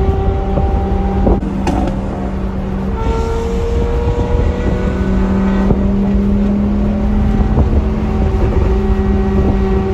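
Tyres rumble on a highway.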